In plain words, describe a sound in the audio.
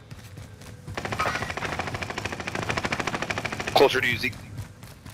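An automatic gun fires a rapid, steady burst of shots.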